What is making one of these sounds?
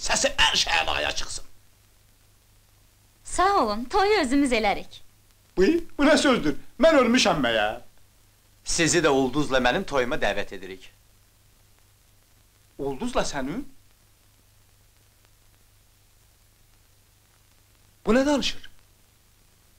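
A man talks with animation nearby, in short bursts.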